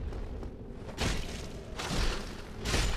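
A weapon strikes a knight with a heavy metallic clang.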